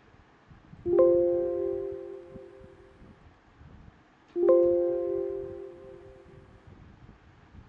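A computer alert chime rings out twice.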